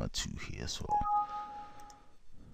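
A computer error chime sounds once.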